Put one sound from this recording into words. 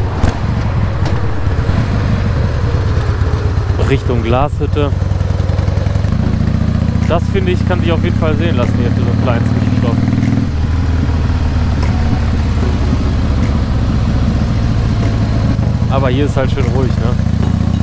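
A motorcycle engine rumbles steadily, with its pitch rising and dropping as it changes gear.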